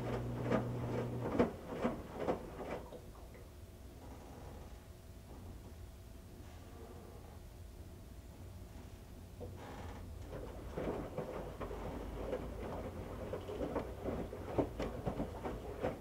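A washing machine drum turns with a low steady hum.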